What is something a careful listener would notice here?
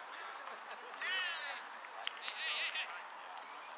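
Young players shout to each other outdoors.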